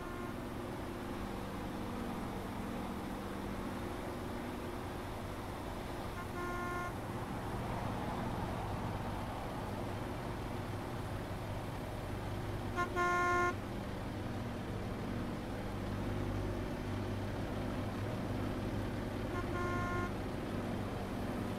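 A heavy truck engine drones steadily at low pitch.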